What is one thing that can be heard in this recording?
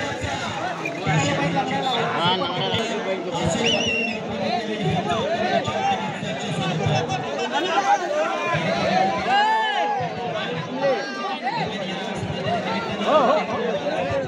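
Men nearby call out excitedly.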